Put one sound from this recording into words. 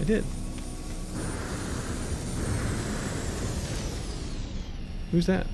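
A spacecraft whooshes past overhead.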